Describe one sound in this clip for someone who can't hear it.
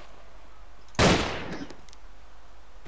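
A pistol fires a single sharp shot that echoes briefly.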